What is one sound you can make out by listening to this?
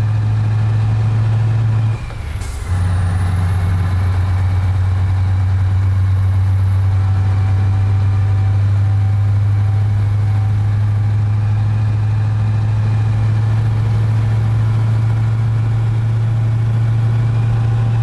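A truck's tyres roll on the road.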